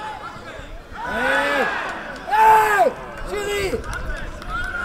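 A young man shouts loudly in protest.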